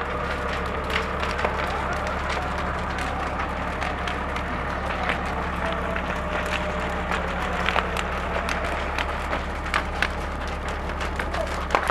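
A large fire roars and crackles loudly.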